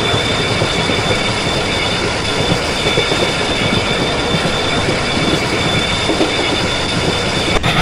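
A train engine rumbles steadily while rolling along the tracks.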